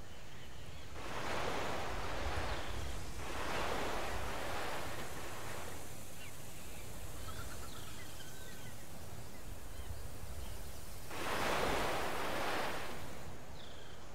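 Water rushes and splashes around wooden ships.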